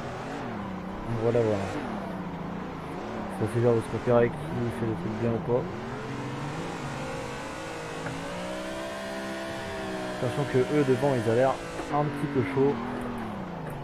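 Tyres squeal loudly in bursts while the car slides.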